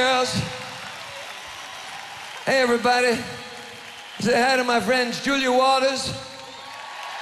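A woman sings into a microphone on a loudspeaker system.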